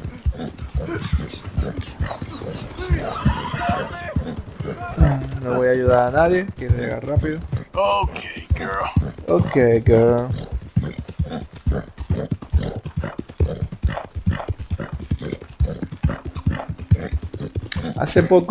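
Horse hooves thud rapidly on a dirt track at a gallop.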